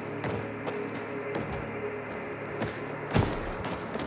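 Hands grip and climb a metal ladder.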